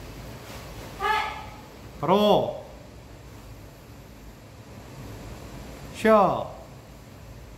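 A young girl shouts sharply in a large, echoing room.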